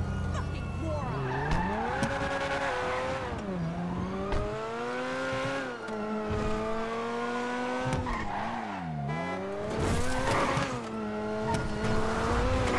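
A car engine revs hard and rises and falls in pitch as the car speeds away.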